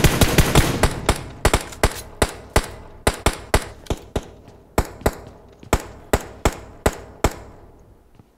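Footsteps thud quickly and evenly.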